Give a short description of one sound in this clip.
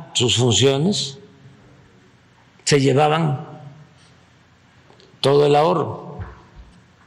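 An elderly man speaks into a microphone in short bursts, in a slow, deliberate way.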